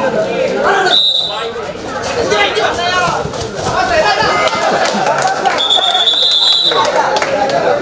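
A referee blows a shrill whistle twice.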